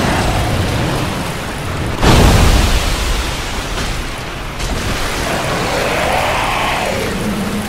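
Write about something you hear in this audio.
Water splashes and churns loudly.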